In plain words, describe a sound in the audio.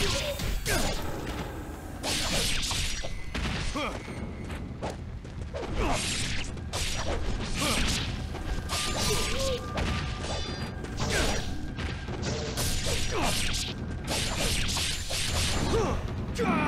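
Swords clash and slash in quick bursts.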